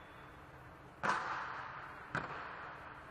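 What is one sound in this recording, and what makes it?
A volleyball is struck with sharp slaps.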